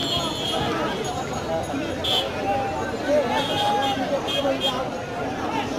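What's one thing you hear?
Men cry out in short, high shouts.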